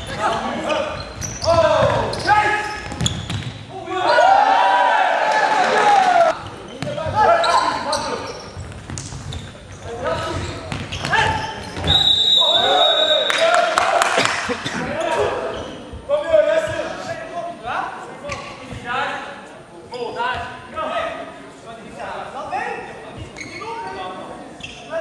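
Futsal players shout to each other in an echoing sports hall.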